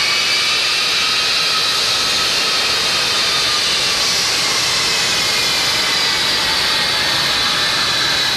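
The turbofan engines of a four-engine military jet transport whine as it taxis.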